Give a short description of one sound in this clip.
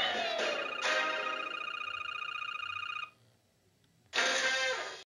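A bright game jingle plays as a star is awarded.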